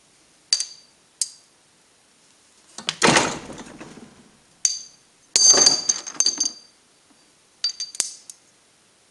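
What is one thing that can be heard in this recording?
Metal parts clink and clatter as they are set into a press.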